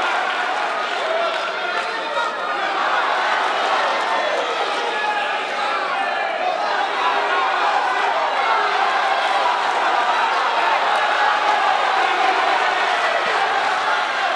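A large crowd cheers and shouts loudly throughout.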